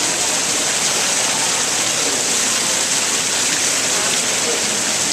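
Water pours and splashes steadily from a fountain into a pool.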